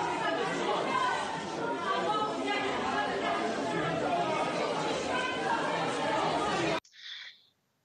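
A crowd in a large echoing hall talks and shouts over one another.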